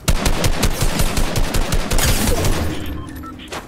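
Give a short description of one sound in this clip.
A rifle fires a rapid burst of gunshots.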